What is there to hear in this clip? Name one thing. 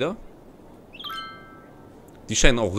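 A short chime rings out.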